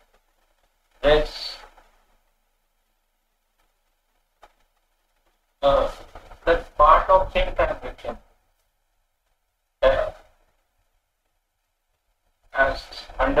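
A middle-aged man speaks calmly over a microphone, in short bursts with pauses.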